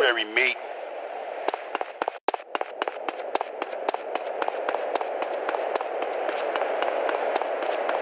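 Footsteps run quickly on hard ground.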